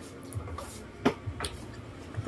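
A utensil clinks against a plate.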